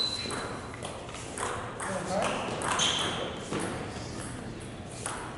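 Ping pong balls click sharply on paddles and tables.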